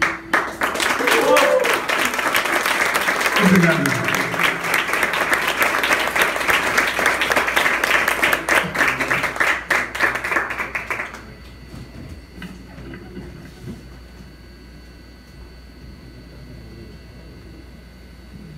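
An electric guitar plays softly.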